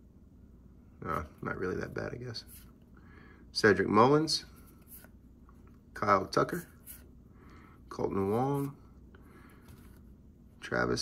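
Trading cards slide and flick against each other in a stack.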